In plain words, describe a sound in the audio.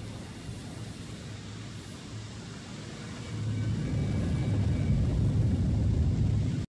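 A spaceship engine rumbles low and steadily, growing louder.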